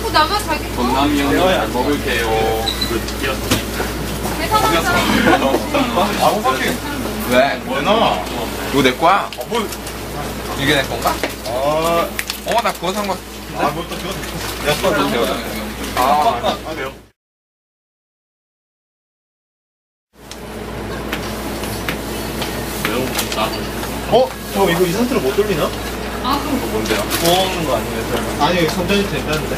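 Young men talk and laugh together with animation close by.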